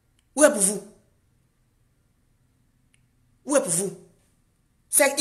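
A woman speaks calmly and close up, in short phrases with pauses.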